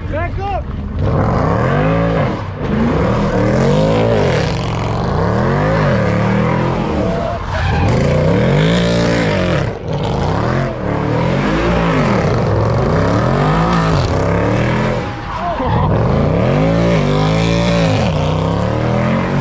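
A car engine revs hard, rising and falling over and over.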